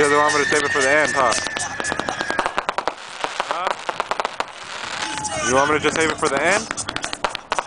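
Fireworks whistle as they shoot upward.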